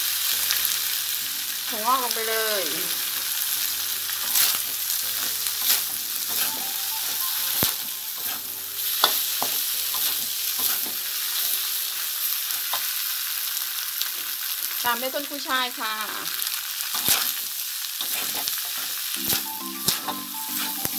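Food sizzles steadily in a hot pan.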